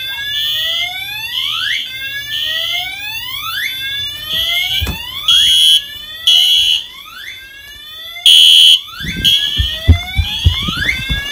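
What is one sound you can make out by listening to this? A fire alarm sounds loudly with repeating rising whoops and shrill beeps.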